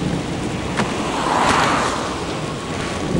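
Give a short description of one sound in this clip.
A car whooshes past in a tunnel.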